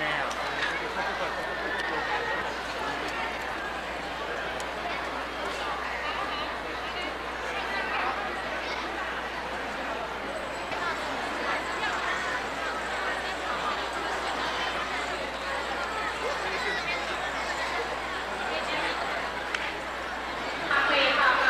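A large crowd murmurs and chatters.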